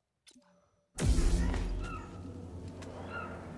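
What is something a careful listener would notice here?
A lightsaber hums loudly amid sudden game action sounds.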